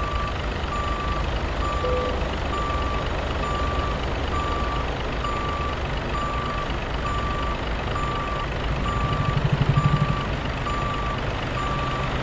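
A truck's reversing alarm beeps steadily at an even pace.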